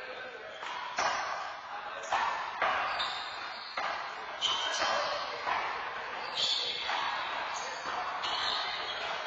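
A ball smacks sharply against walls and hands, echoing in a large hard-walled room.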